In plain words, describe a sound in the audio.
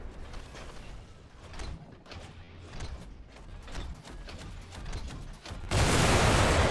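A giant robot's heavy footsteps clank and thud steadily.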